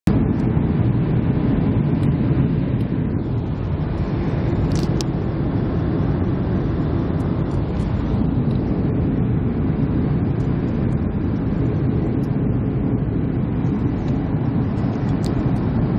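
Jet engines roar steadily inside an airliner cabin in flight.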